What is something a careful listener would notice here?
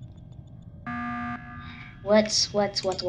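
An alarm blares briefly.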